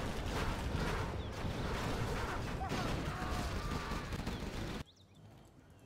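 Shells explode with a rumble.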